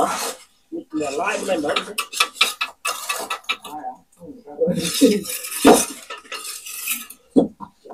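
Bricks clack as they are set down.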